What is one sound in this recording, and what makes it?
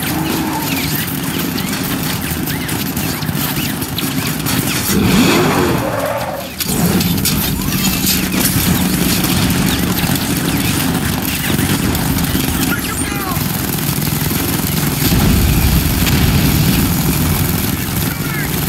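A heavy vehicle engine rumbles and revs.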